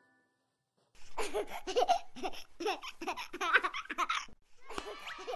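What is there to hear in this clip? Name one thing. A small child laughs cheerfully, close by.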